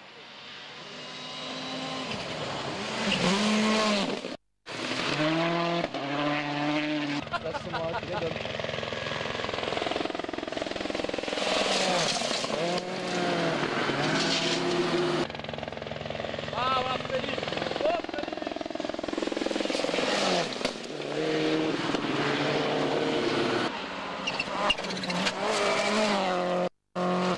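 Rally car engines roar loudly and rev up and down as they speed past.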